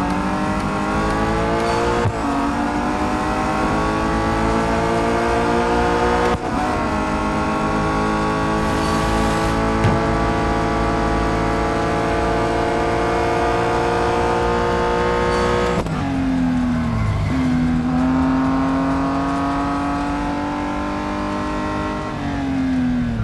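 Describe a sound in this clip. A racing car engine roars at high revs, climbing in pitch and dropping sharply at each gear change.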